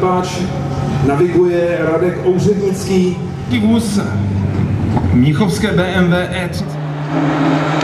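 A rally car engine idles and revs loudly.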